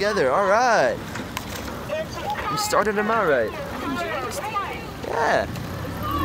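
Oars splash and dip in the water nearby.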